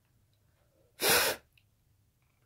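A short puff of breath blows out a candle flame.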